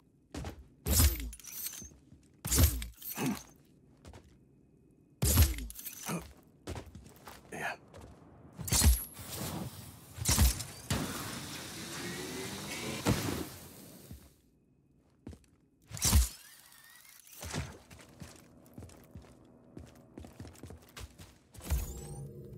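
Heavy thuds sound as a figure climbs and lands.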